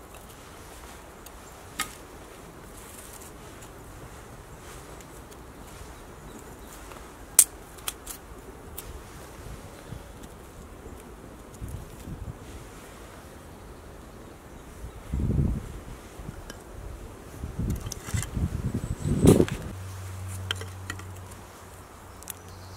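Thin wooden sticks knock together as they are laid down.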